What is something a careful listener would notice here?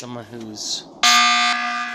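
A sharp slashing sound effect cuts through with a loud burst.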